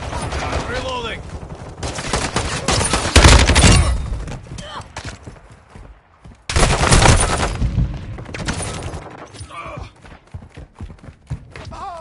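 Rapid gunfire rattles in quick bursts.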